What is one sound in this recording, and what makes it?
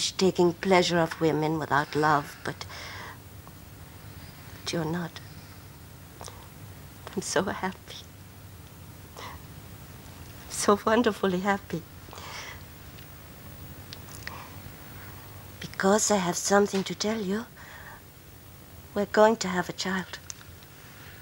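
A woman speaks softly and emotionally, close by.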